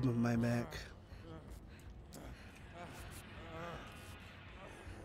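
A young man talks quietly into a close microphone.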